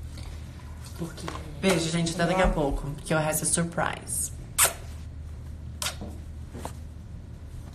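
A young woman speaks casually, close to the microphone.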